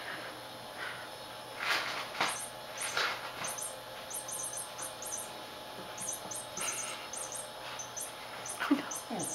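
A kitten's paws patter and skid on a wooden floor.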